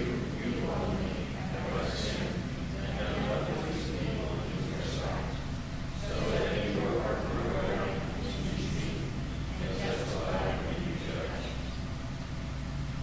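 A man reads aloud calmly in an echoing hall.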